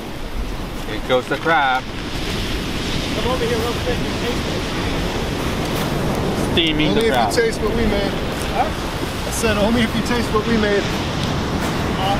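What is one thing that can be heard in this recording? A man talks outdoors.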